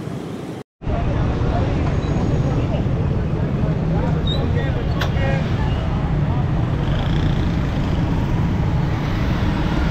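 A crowd murmurs in the background.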